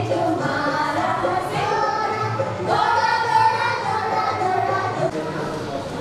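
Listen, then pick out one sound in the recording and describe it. A woman speaks with animation to a group of children.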